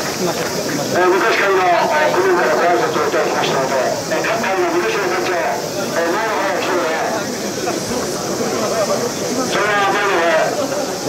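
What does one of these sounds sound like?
A large outdoor crowd chatters.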